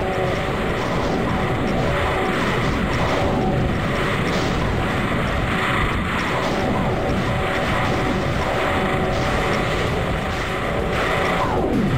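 Monsters roar and growl in a chaotic battle.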